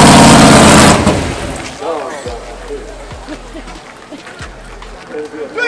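A race car engine idles with a low rumble.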